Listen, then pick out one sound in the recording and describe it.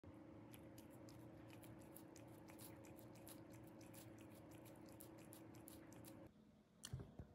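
A cat licks and laps wet food with quick, smacking sounds.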